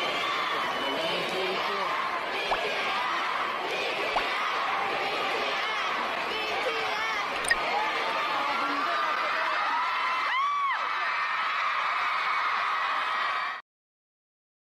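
A large crowd cheers and screams loudly in a big echoing hall.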